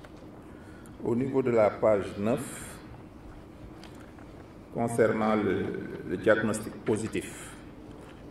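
A man speaks slowly and calmly into a microphone.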